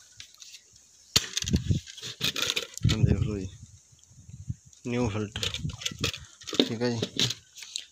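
A plastic cover rattles and knocks as a hand handles it.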